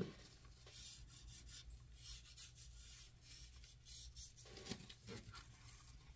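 A hand pats and rubs down loose glitter.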